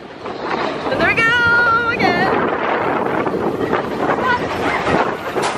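Riders on a roller coaster scream with excitement close by.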